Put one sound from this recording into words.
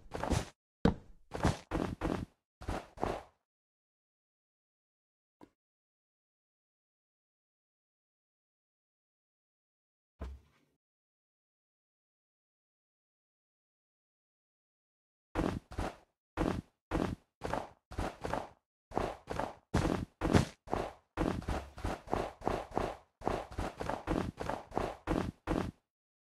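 Blocks break in quick bursts of crunching, crumbling thuds.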